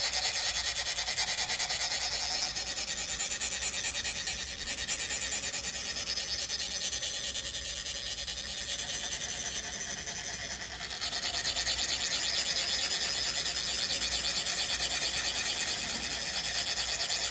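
Metal funnels are rubbed together in a fast, steady rasping rhythm.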